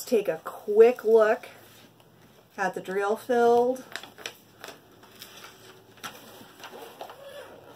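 A plastic sheet peels away from a sticky surface with soft crackles and rustles.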